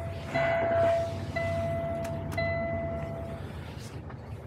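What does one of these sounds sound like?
A truck's dashboard warning chime sounds in long steady tones.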